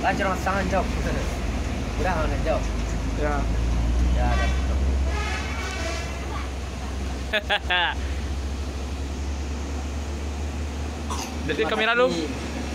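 A teenage boy talks and laughs close by.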